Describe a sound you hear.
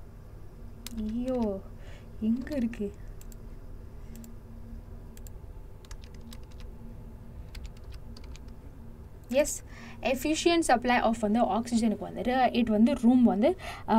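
A young woman speaks calmly and closely into a microphone, with pauses.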